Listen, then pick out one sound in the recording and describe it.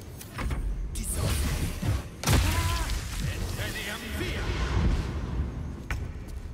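Magic blasts crackle and burst in a busy fight.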